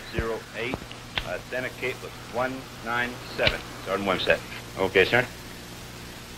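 A man speaks calmly into a telephone handset, close by.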